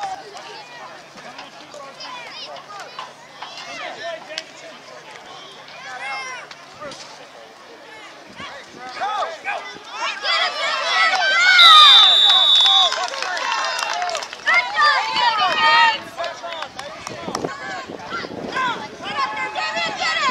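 A crowd of adults and children cheers and shouts loudly outdoors.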